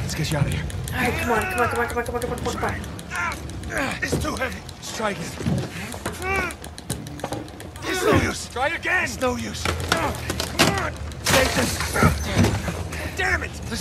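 A man urges another man on, straining.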